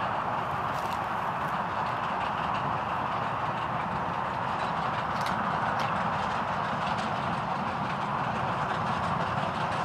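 A steam train chugs steadily in the distance.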